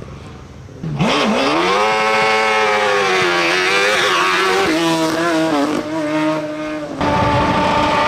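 A race car engine roars loudly, revving hard as it speeds past.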